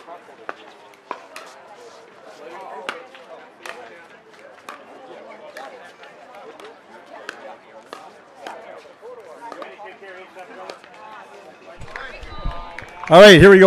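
Paddles knock a ball back and forth outdoors.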